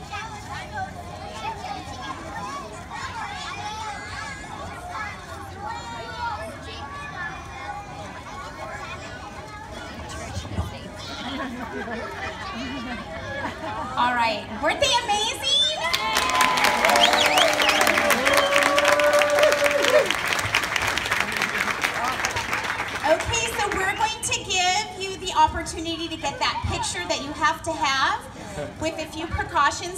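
A large choir of young children sings together outdoors.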